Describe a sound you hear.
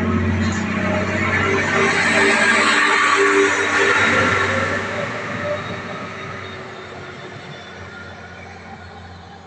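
A diesel railcar passes close by, then rumbles off and fades into the distance.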